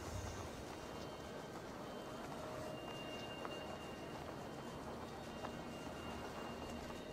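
Footsteps crunch softly on dirt.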